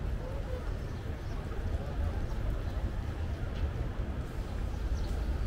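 Footsteps tap on a stone pavement.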